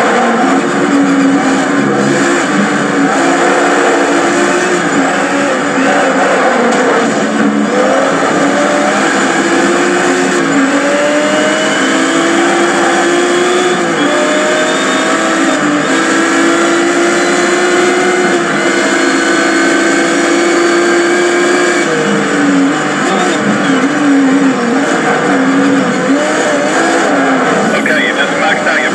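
Racing car engines roar and whine through a small television speaker as the revs rise and fall.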